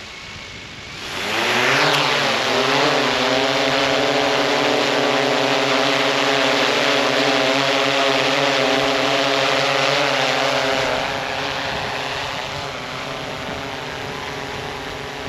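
A drone's rotors spin up with a rising whine and settle into a loud, steady buzz.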